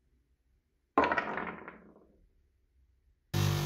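A small metal part drops onto a wooden bench and rings.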